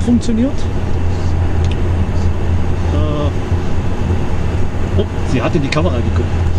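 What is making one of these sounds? A car hums and rumbles steadily as it drives along a road.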